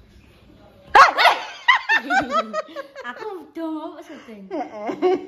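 A young woman talks excitedly close by.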